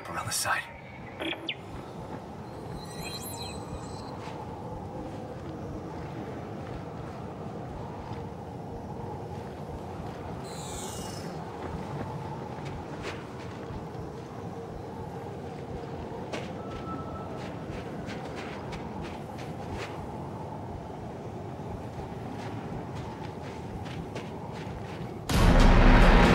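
A blizzard wind howls steadily.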